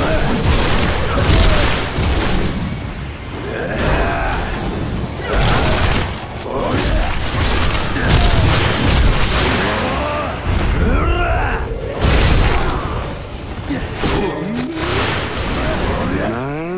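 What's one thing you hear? A sword slashes and strikes repeatedly in heavy combat.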